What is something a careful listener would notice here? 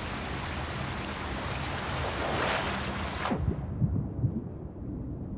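Water swirls and rumbles in a low, muffled hush.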